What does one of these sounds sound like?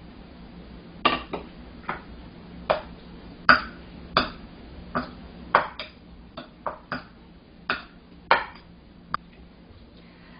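A metal spoon clinks against a bowl while stirring.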